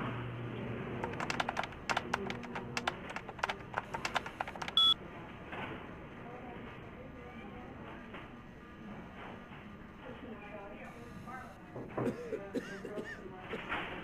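Keyboard keys click rapidly in a quick burst of typing.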